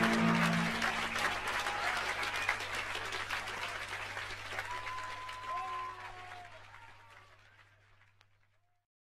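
A piano plays softly.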